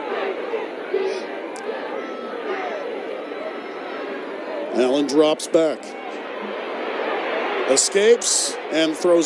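A large crowd cheers and murmurs steadily outdoors.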